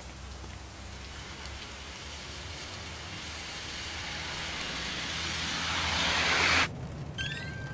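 A car drives closer over a wet road, tyres hissing louder.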